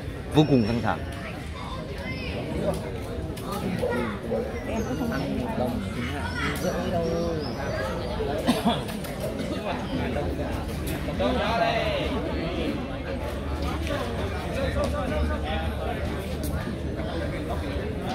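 A crowd of men and women chatters nearby, heard outdoors.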